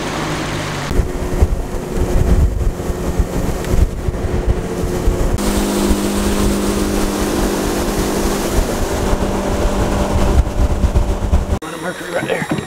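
A boat motor rumbles steadily while moving over water.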